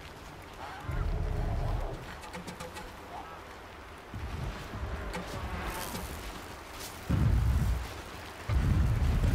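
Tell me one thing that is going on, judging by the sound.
A large mechanical creature rumbles and growls nearby.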